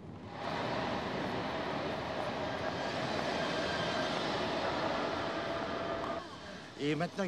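A train rumbles into a large echoing station.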